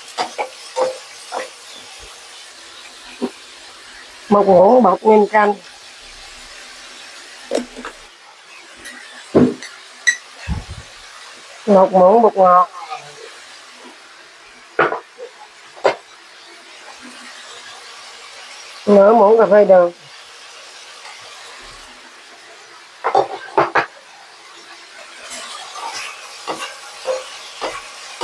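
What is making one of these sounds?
A spatula scrapes and clinks against a metal wok.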